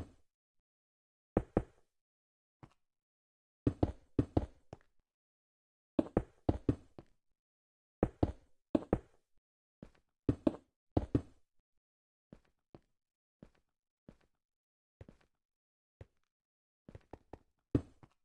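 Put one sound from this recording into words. A pickaxe chips at stone blocks in quick bursts of sharp knocks.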